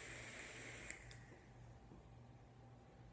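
A man exhales a long breath.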